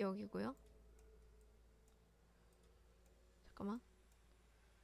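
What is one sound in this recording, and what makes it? A short pitched game chime sounds as a card is moved.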